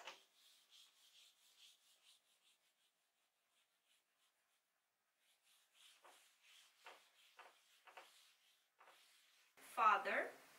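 An eraser rubs across a whiteboard in quick swipes.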